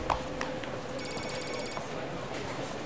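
A video game menu plays a short chiming tone as a message pops up.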